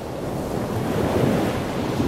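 Waves break and wash onto a shore.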